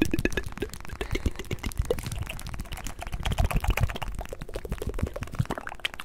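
A young man makes quick mouth sounds close into a microphone.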